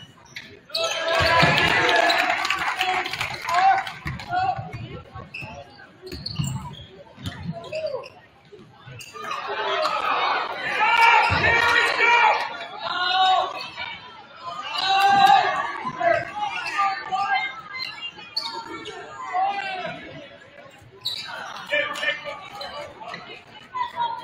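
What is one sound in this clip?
A basketball bounces on a wooden court.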